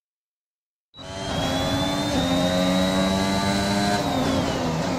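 A racing car engine revs high and whines steadily.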